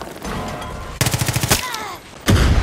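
An automatic rifle fires rapid, loud bursts of shots close by.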